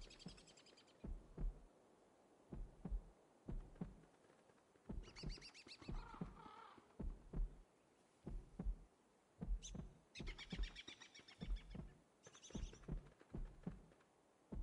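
Blows land with soft thuds during a scuffle.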